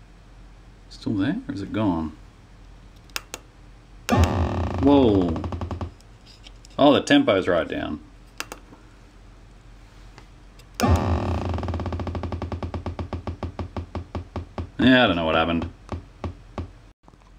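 A small electronic synthesizer plays warbling, sweeping tones in short bursts.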